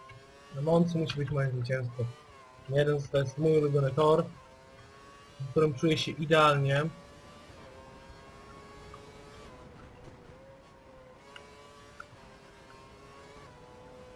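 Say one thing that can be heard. A racing car engine whines steadily, rising and falling in pitch as the car speeds up and slows down.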